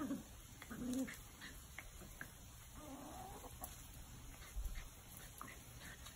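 A small dog scampers across grass.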